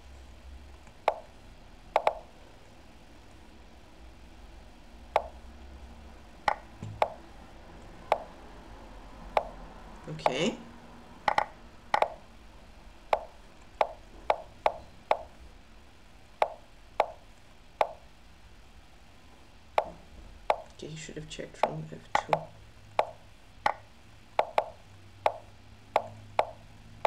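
Short sharp clicks sound each time a chess piece moves in an online game.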